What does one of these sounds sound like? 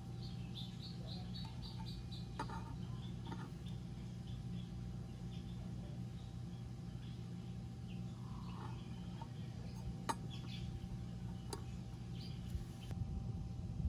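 A metal caliper clicks against a brake disc.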